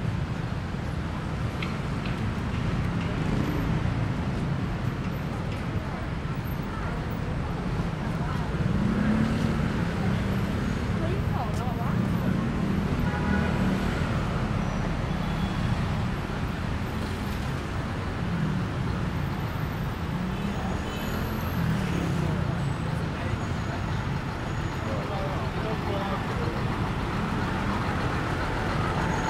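Traffic rumbles steadily along a busy city street outdoors.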